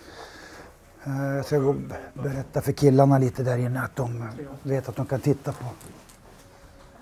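A man speaks loudly with animation close by.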